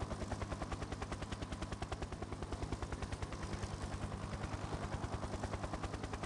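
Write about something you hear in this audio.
A helicopter's rotor chops steadily and quickly.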